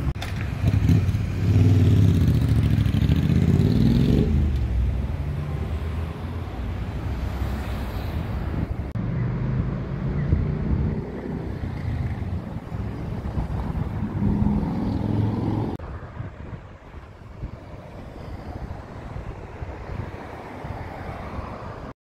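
Traffic rumbles by on a city street outdoors.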